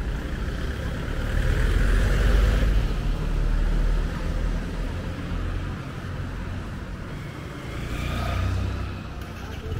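A motorcycle engine hums as it rides past.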